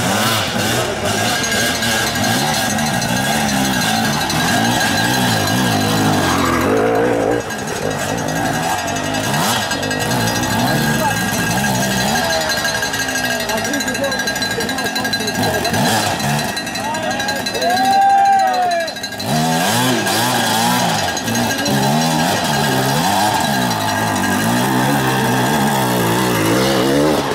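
A dirt bike engine revs hard and sputters close by, rising and falling in bursts.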